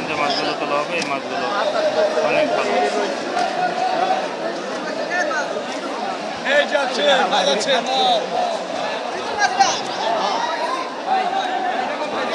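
A crowd of men talks and calls out loudly all around.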